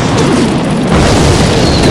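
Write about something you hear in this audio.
A magic blast explodes with a loud whoosh.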